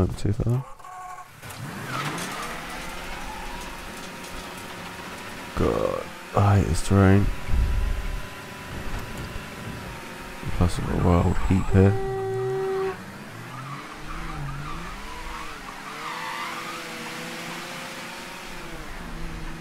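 A car engine starts and revs as the car drives away and speeds up.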